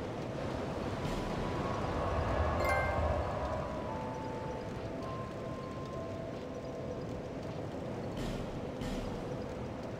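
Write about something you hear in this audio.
Soft menu clicks tick in a game.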